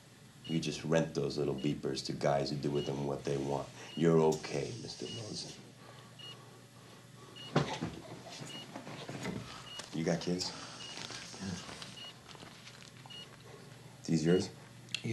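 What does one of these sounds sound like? A man speaks quietly in a low voice, close by.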